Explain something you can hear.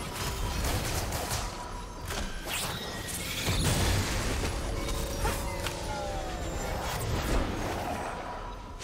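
Magic blasts and impacts burst in quick succession.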